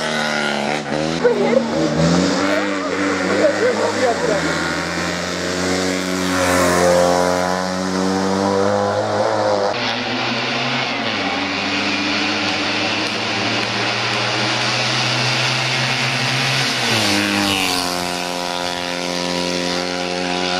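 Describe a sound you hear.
A small race car engine revs hard and roars up a winding road, its pitch rising and falling as it shifts gears.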